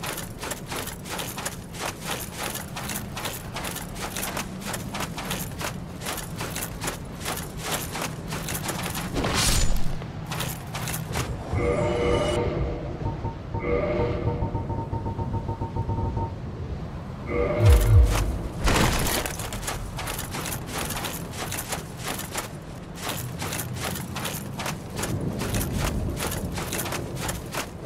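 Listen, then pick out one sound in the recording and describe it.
Heavy armored footsteps crunch quickly over gritty ground.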